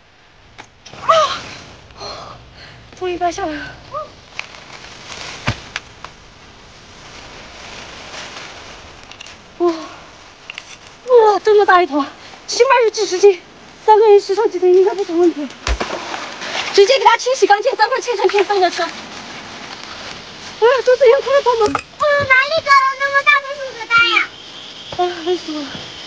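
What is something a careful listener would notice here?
A woman talks with animation close by.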